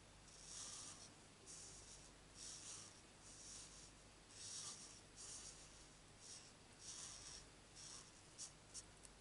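A felt-tip marker scratches across card stock.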